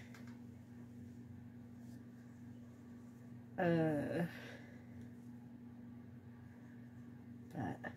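Soft fabric rustles.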